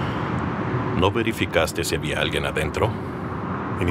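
A middle-aged man speaks in a low, serious voice close by.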